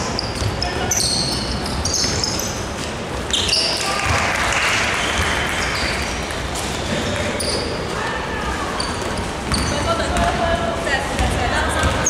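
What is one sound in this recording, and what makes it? Basketball shoes squeak sharply on a wooden court in a large echoing hall.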